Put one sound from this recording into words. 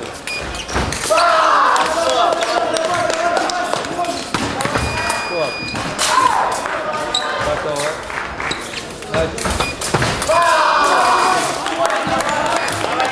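Young fencers shout loudly in an echoing hall.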